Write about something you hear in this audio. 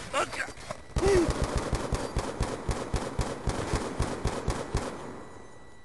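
A rifle fires rapid, loud shots.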